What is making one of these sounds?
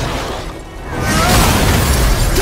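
An icy blast bursts with a crashing roar.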